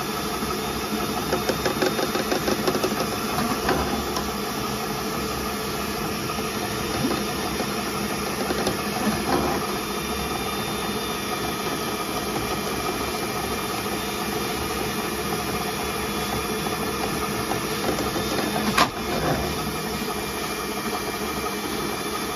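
Water sloshes and gurgles in a drain.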